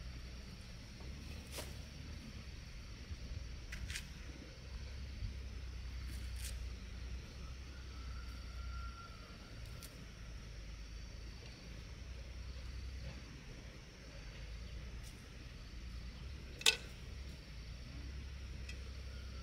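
A sickle chops into dry soil with sharp knocks.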